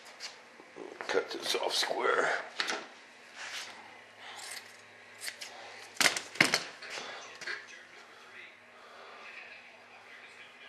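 A thin sheet is peeled and torn away from a panel, crackling and ripping.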